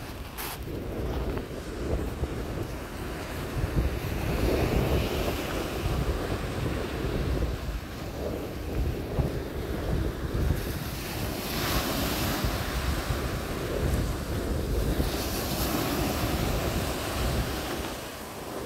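Small waves break and wash up onto a shingle shore.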